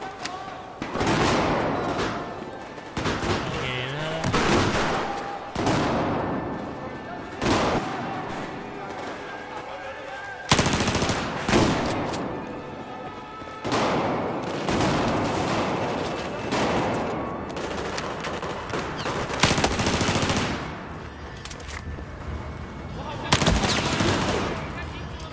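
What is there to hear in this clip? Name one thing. Gunshots fire in loud bursts and echo off hard walls.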